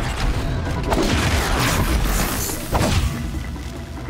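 A spear strikes a machine with loud metallic crashes.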